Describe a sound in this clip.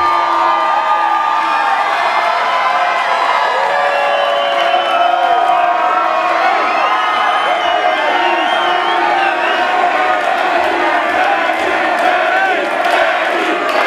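A large crowd cheers and sings loudly in a big echoing hall.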